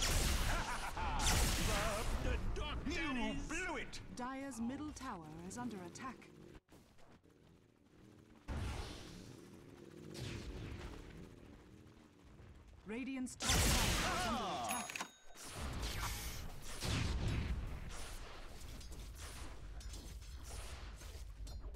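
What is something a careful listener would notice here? Magic blasts whoosh and crackle in a fight.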